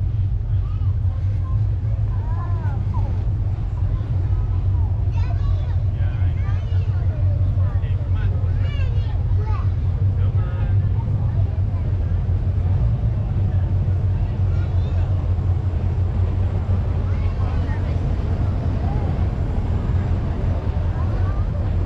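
A loud engine idles with a deep, steady rumble.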